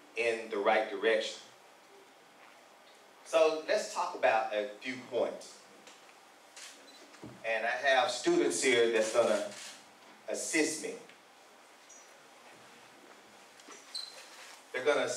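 A man speaks calmly into a microphone over loudspeakers, in a large room with a slight echo.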